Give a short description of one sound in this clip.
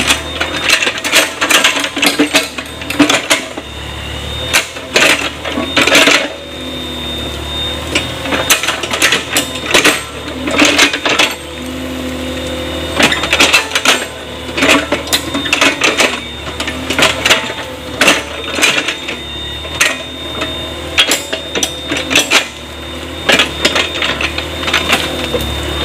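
A small excavator engine rumbles steadily.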